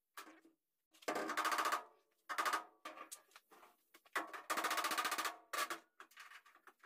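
A hammer taps on sheet metal.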